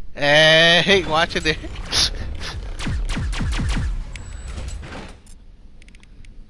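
Rapid laser gunfire crackles and bursts.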